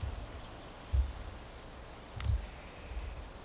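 A stick thumps against the ground.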